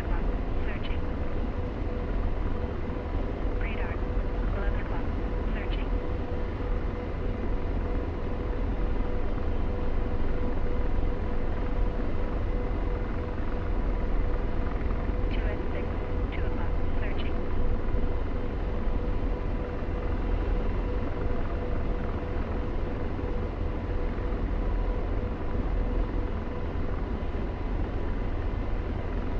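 A helicopter's engine and rotor drone steadily from inside the cockpit.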